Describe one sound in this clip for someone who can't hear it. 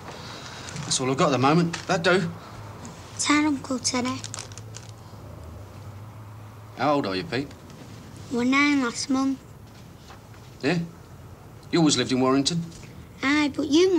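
A man speaks nearby in a low, troubled voice.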